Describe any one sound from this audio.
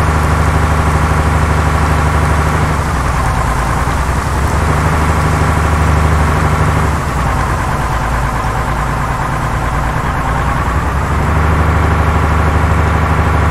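A vehicle engine rumbles steadily as it drives along a road.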